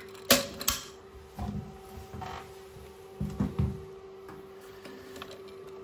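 Plastic parts inside a toilet cistern click and knock as a hand adjusts them.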